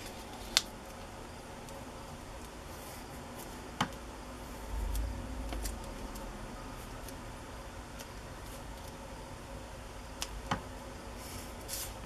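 A pencil scratches lightly on cardboard.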